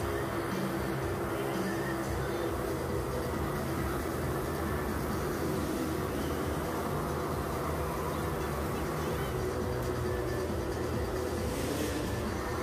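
An electric guitar plays loudly through speakers.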